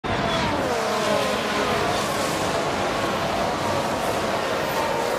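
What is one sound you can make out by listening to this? Race cars whoosh past one after another.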